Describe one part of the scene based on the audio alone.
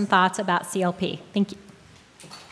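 A woman speaks calmly into a microphone over loudspeakers in a large hall.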